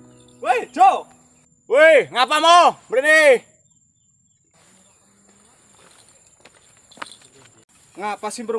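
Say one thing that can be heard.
A young man speaks loudly and with animation, close by.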